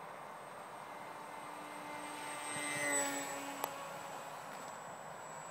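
An aircraft engine whines loudly as it flies close overhead and fades away.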